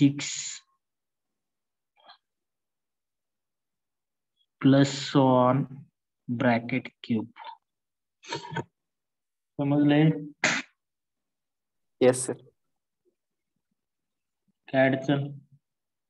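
A man speaks calmly through a microphone in short phrases, pausing between them.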